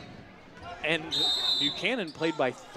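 A referee's whistle blows a short, shrill blast.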